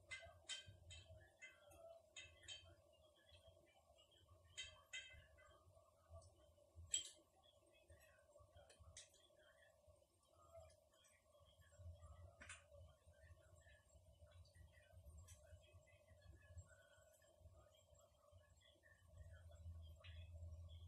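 A spoon clinks against a small bowl.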